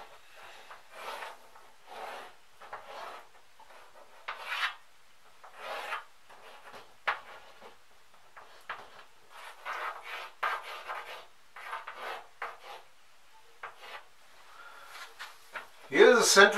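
Chalk scratches and taps on a board in short strokes.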